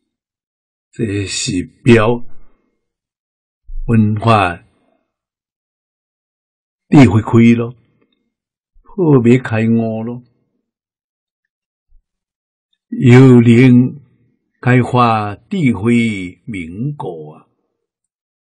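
An elderly man speaks calmly and slowly in short phrases, close to a microphone.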